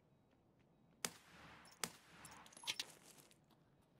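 Loud rifle shots crack, each followed by a rolling echo.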